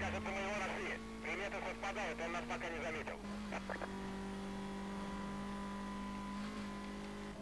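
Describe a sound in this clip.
A car engine hums steadily at high speed.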